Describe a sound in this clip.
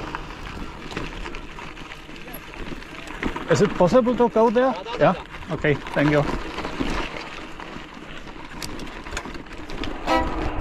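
Bicycle tyres roll over rough dirt and gravel.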